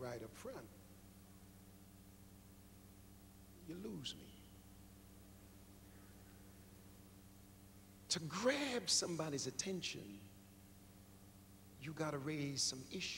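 A man preaches with animation into a microphone, in bursts with long pauses, in a large echoing hall.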